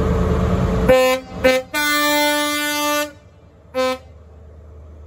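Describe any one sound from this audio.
A train horn blares in short and long blasts.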